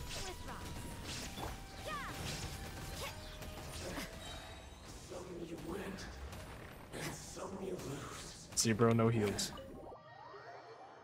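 Magic blasts crackle and boom in a fast-paced battle.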